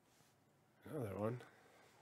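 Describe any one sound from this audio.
Trading cards slide and flick against each other in a hand.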